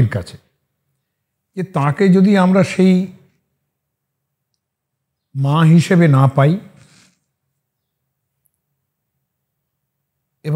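An elderly man speaks calmly and clearly into a close microphone, with long pauses.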